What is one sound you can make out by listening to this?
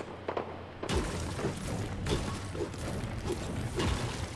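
A pickaxe chops into a wooden wall in a video game.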